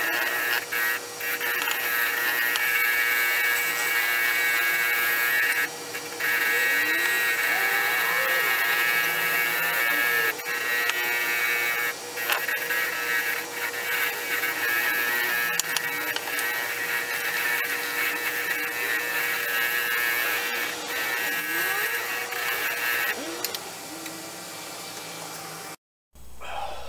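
A motor hums steadily.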